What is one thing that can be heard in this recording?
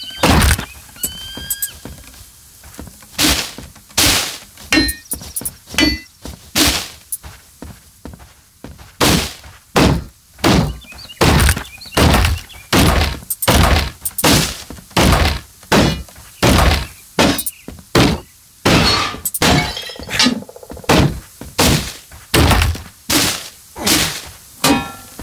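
Heavy blows thud again and again in quick, even strikes.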